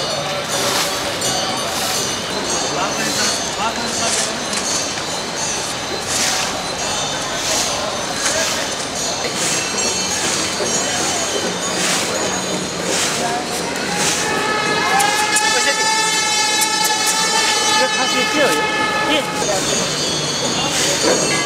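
River water rushes and churns steadily.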